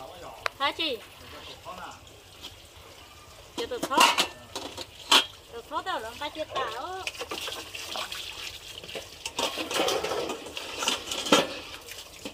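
Dishes clink and clatter against each other.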